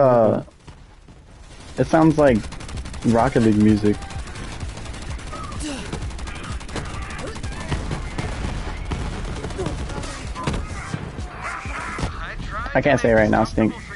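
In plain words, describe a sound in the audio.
Rapid gunfire crackles and pops.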